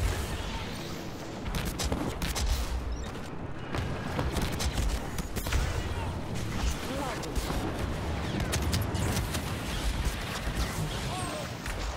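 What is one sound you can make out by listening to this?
Electric lightning crackles and buzzes.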